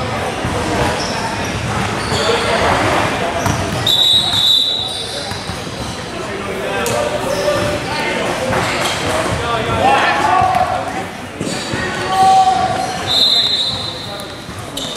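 Spectators talk nearby in a large echoing gym.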